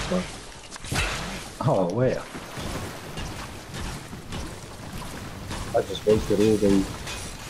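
Water sloshes steadily.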